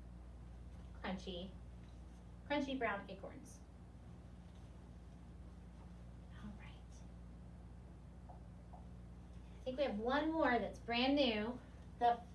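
A young woman speaks clearly and calmly, as if teaching.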